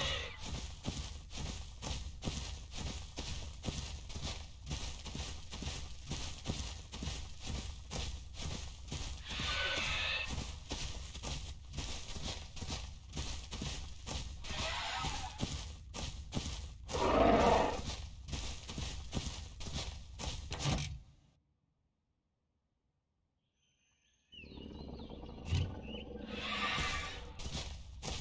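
A dinosaur's footsteps thud quickly and steadily over grass.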